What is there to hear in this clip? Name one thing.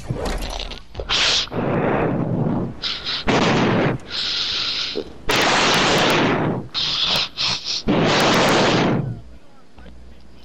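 Wind rushes loudly in bursts during a glide through the air.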